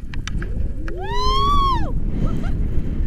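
A young woman lets out a long, excited shriek up close.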